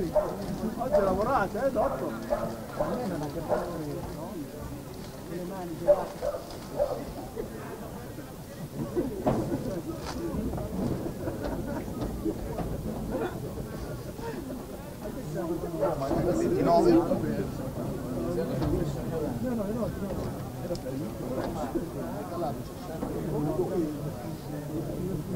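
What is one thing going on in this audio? Young men shout and call to each other across an open field, heard from a distance.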